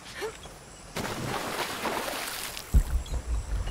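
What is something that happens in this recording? Water splashes heavily, close by.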